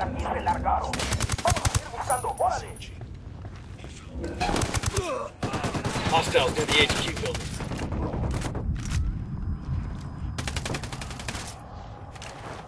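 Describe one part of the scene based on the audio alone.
Rapid gunfire rattles in bursts.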